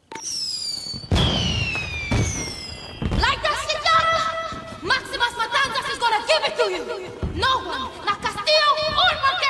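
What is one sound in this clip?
Fireworks whistle and crackle overhead.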